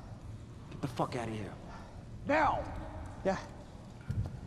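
A man shouts angrily nearby.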